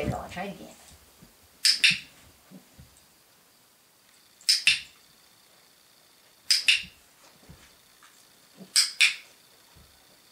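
A dog paws and rustles at a blanket.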